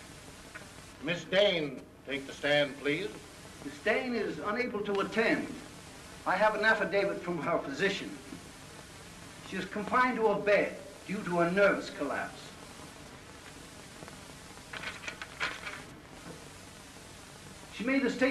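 A man reads out formally in a large room.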